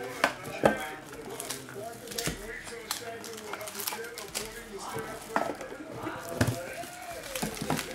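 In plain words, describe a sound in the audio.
Cardboard box flaps rustle and scrape as they are opened.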